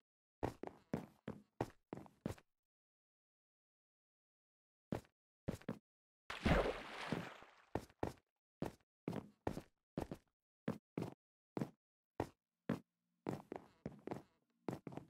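Footsteps tap quickly on wooden planks.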